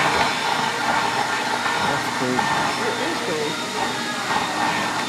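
A machine whirs steadily as it blows stuffing into a soft toy.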